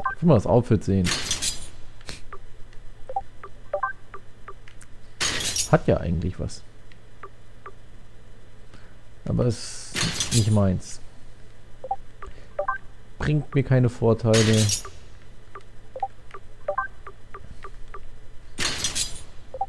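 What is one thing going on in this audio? Soft electronic blips chime as selections change.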